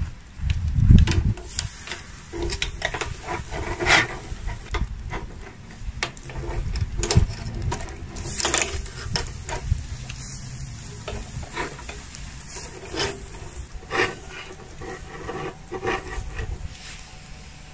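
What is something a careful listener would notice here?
Metal skewers clink and scrape against each other and a grill's edge.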